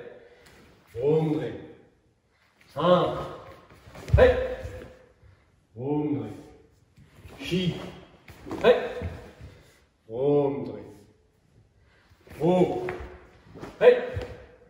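A man shouts out in short, sharp bursts in an echoing hall.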